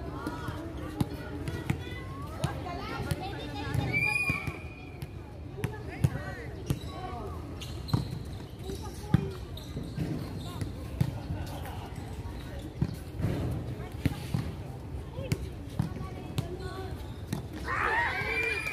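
Women players call out to each other across an outdoor court.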